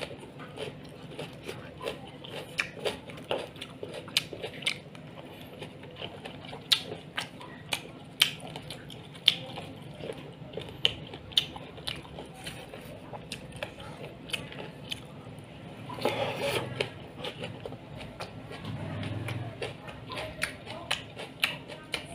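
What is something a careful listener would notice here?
A man chews and slurps food noisily, close to a microphone.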